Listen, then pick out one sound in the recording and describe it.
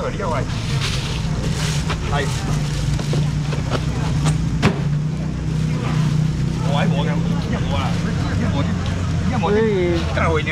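Many people talk at once around a crowd.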